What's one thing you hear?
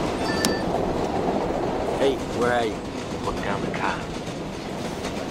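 A subway train rumbles steadily along the tracks.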